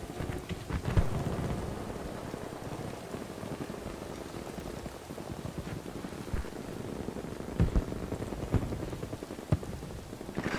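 Rifle shots crack now and then.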